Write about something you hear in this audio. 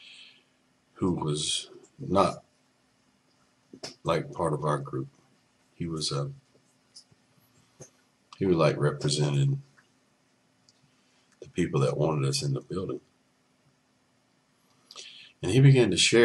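A middle-aged man speaks calmly in bursts, close to a microphone, as on an online call.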